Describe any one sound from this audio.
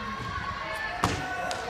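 A gymnast lands a flip on a balance beam with a loud thump.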